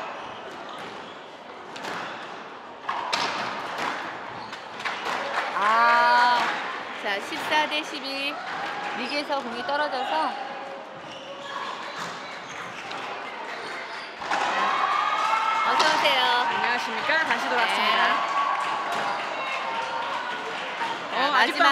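A squash ball smacks off rackets and walls in a sharp, echoing rhythm.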